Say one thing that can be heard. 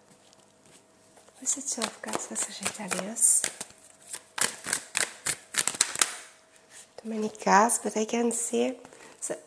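Playing cards riffle and slap as they are shuffled by hand.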